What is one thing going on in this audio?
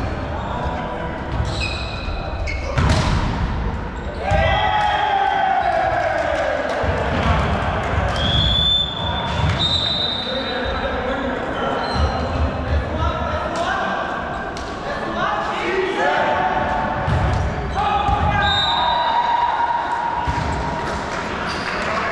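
Young men call out and shout to each other across the court.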